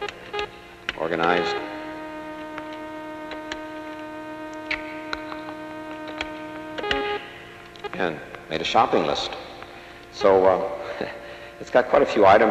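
A middle-aged man speaks calmly into a headset microphone.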